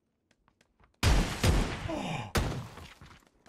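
A shotgun fires loudly at close range.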